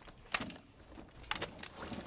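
A rifle magazine clicks as it is reloaded.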